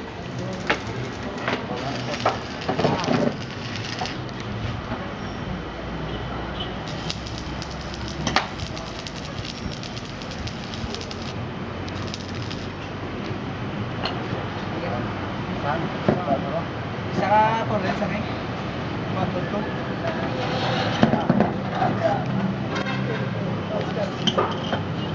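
Metal bangs and clanks on metal.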